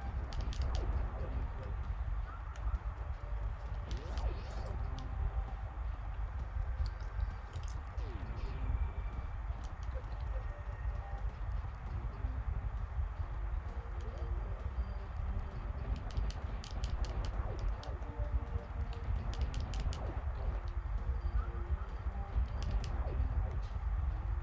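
Retro video game music plays.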